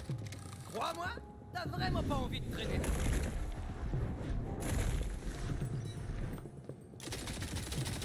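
Gunshots and deep booms from a game ring out.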